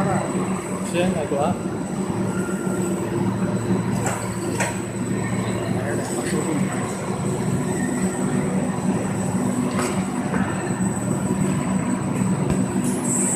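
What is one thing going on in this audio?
Machinery hums and drones steadily.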